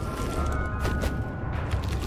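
A magic spell crackles and hums.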